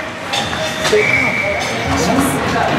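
A referee's whistle blows briefly.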